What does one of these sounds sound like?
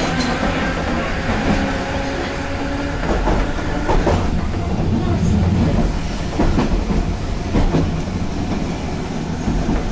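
A train rumbles steadily along the rails, its wheels clattering and squealing over the track.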